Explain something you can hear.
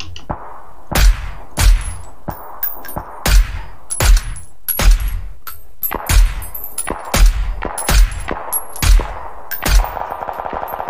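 Rifle shots crack in quick bursts, one after another.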